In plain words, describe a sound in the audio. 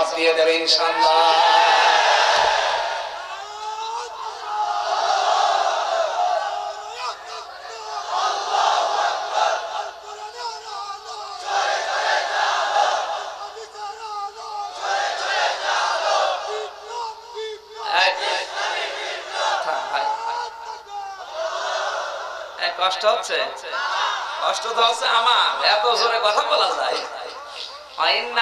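A man chants and preaches loudly and with feeling into a microphone, his voice ringing through loudspeakers.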